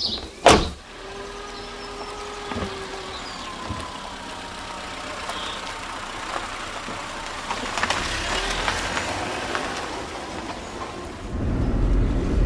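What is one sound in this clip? A car engine starts and idles.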